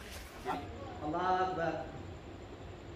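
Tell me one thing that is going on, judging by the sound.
A man chants a prayer in a drawn-out, raised voice.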